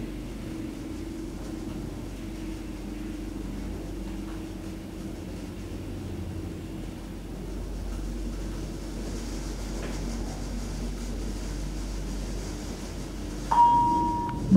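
An elevator hums steadily as it descends.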